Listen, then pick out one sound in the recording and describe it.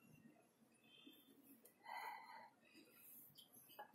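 Dough is pressed and patted softly onto a board.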